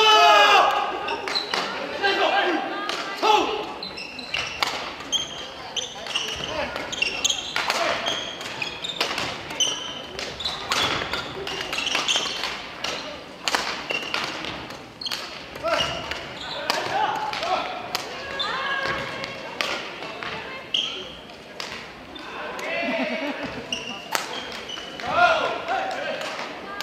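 Players' shoes squeak on a wooden floor.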